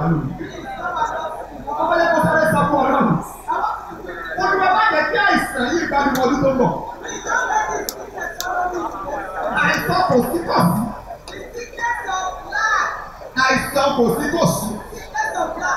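A man preaches loudly and with animation through a microphone and loudspeakers.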